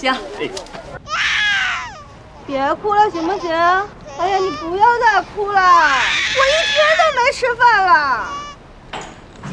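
A baby cries loudly up close.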